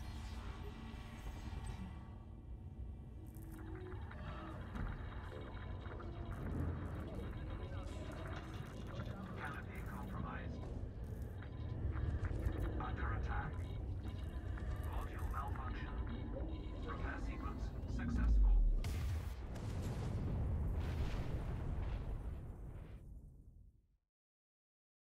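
A spaceship engine rumbles deeply.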